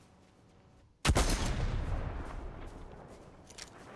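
A rifle fires a single loud shot that echoes away.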